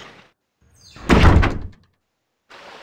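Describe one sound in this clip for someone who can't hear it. A wooden crate lid bangs and clatters open.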